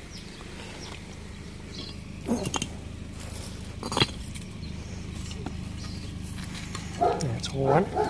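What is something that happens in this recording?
Stone slabs scrape and knock as they are lifted.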